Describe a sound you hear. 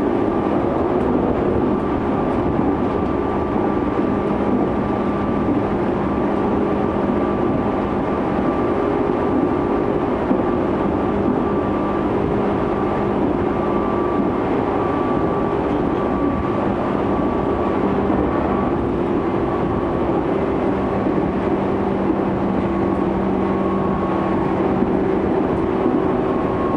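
An electric commuter train rumbles along the rails at speed, heard from inside a carriage.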